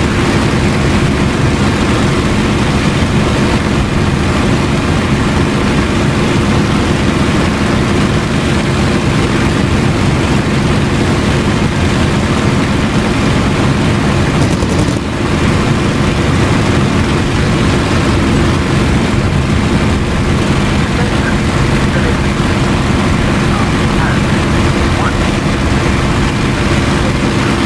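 Wind rushes past an aircraft canopy.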